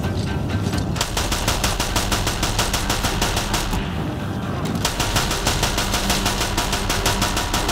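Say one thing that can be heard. A heavy gun fires in a fast, steady rattle.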